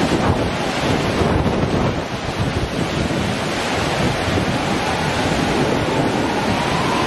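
Strong wind blows and buffets outdoors.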